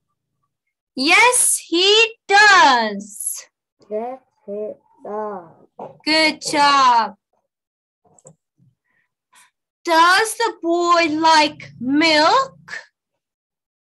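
A woman speaks clearly and with animation over an online call, asking questions and answering them.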